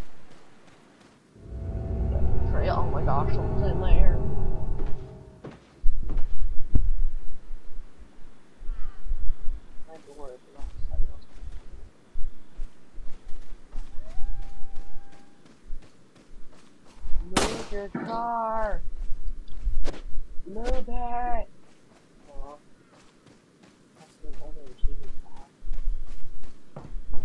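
Footsteps run over dry leaves and dirt.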